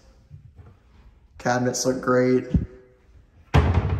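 A cabinet door bangs shut.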